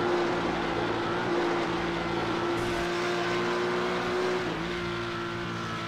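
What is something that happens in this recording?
A racing car engine roars steadily at high revs, dipping briefly as the driver shifts gear.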